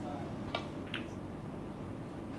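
Balls knock together on the table.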